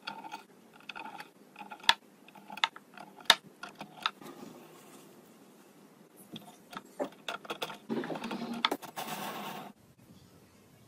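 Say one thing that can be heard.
Small plastic parts click as they are pressed into a board.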